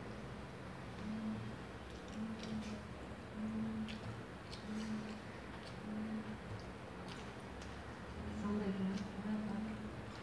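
A boy tears apart a piece of fried chicken with his fingers.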